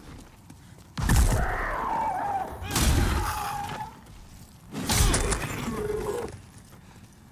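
A sword slashes and strikes heavily.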